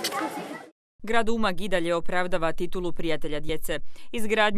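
A young girl speaks loudly into a microphone through a loudspeaker.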